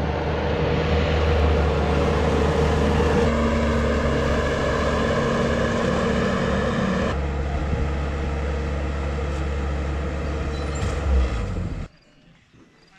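A diesel skid steer loader engine runs.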